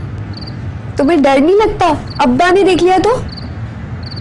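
A young woman speaks with feeling.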